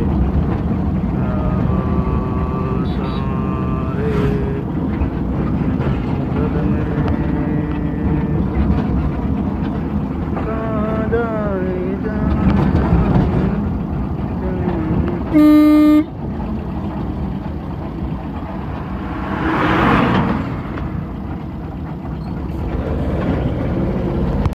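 A vehicle engine hums steadily while driving on a road.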